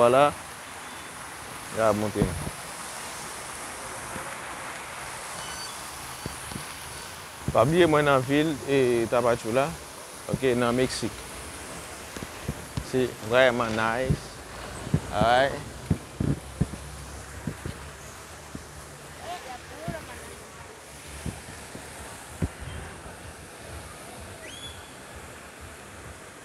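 Water from a fountain splashes and patters steadily outdoors.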